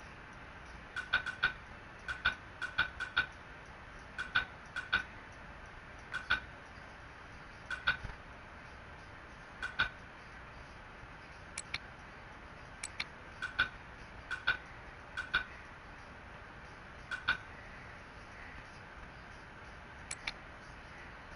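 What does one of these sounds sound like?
Short, soft menu clicks tick again and again as a list scrolls.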